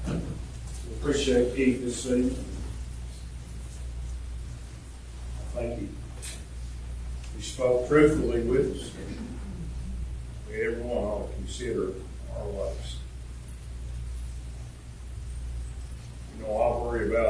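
A man speaks calmly at a distance in an echoing hall.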